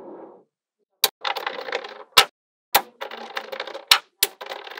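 Small metal magnet balls click and snap together.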